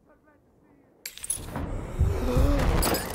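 Gunfire and explosions rumble loudly.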